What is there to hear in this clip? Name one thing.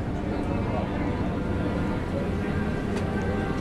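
Water rushes steadily along a ship's hull.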